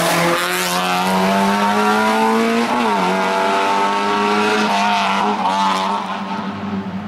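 A racing car engine revs hard and shifts gears as the car speeds up the road.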